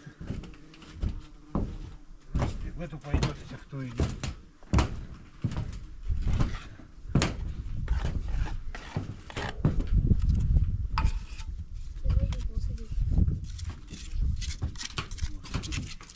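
Bricks knock and tap against each other.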